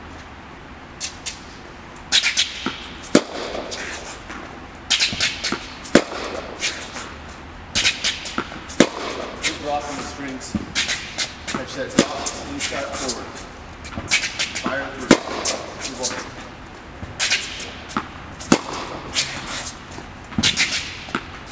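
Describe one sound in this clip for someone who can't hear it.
Tennis balls pop off racquets in a steady back-and-forth rally.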